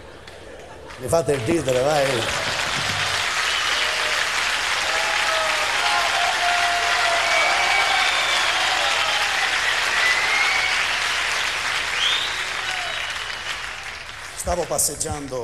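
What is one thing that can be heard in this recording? A man speaks animatedly through a microphone in a large hall.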